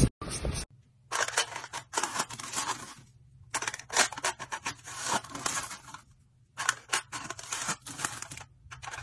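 A row of blades scores a foil lid in short, crisp, crinkly strokes.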